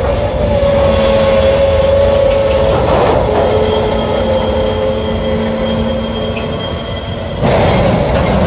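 Train wheels squeal with a steady high whine.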